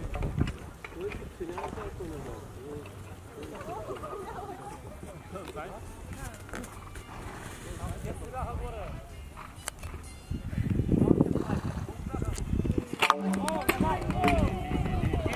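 A horse's hooves thud on grass as it canters.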